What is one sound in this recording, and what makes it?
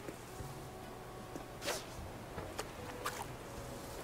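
A fishing line is cast and its float plops into the water.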